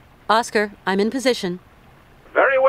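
A young woman speaks calmly into a phone.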